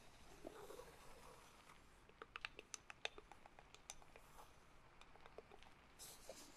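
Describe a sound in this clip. Fingernails tap and click on a hard lid close up.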